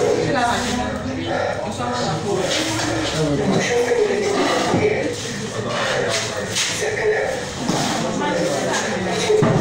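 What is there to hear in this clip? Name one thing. A group of young people talk at once, heard close by.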